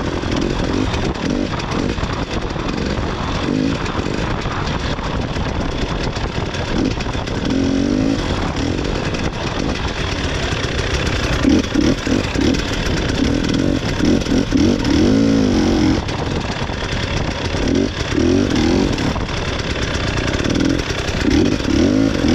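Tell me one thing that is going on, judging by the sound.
A small motorbike engine drones and revs up and down close by.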